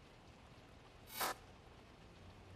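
An electronic alert beeps sharply.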